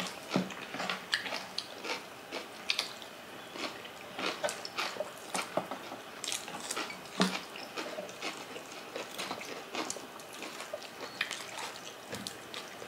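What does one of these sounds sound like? Two women chew and smack their lips close to a microphone.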